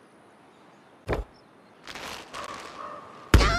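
A slingshot stretches and snaps.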